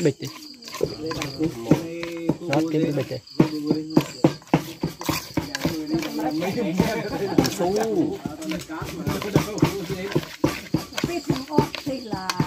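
Chopsticks stir food and tap against a metal bowl.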